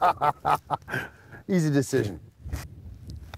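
A man laughs outdoors with animation.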